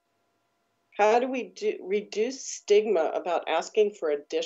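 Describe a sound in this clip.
A woman speaks with animation over an online call.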